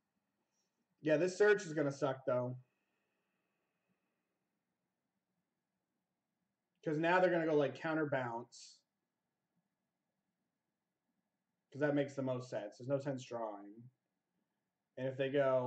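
A young man speaks calmly into a close microphone, in short bursts with pauses.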